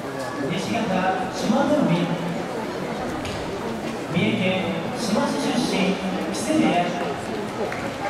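A man calls out in a drawn-out chanting voice.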